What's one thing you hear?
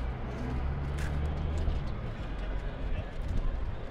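Footsteps thud on a metal footbridge.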